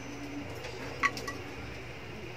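A metal ladle clinks against a stainless steel pot.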